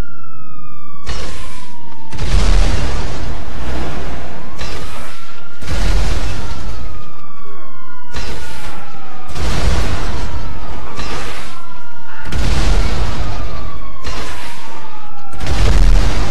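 Explosions boom one after another, echoing in a tunnel.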